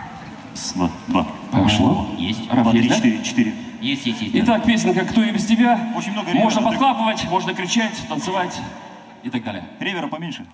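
A young man sings through a microphone.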